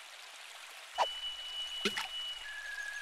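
A fishing line whips out and plops into the water.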